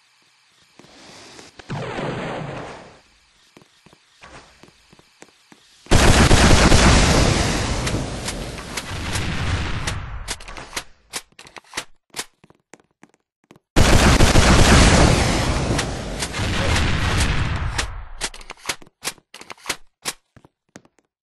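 Guns fire in quick sharp bursts.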